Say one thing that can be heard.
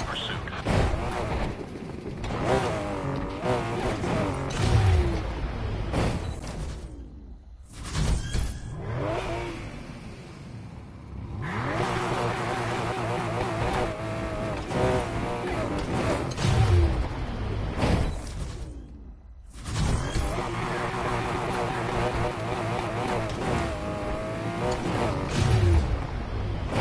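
A car engine revs hard and roars as gears shift up and down.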